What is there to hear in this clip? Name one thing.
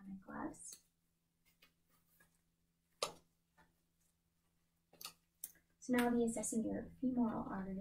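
Rubber gloves snap as they are pulled on.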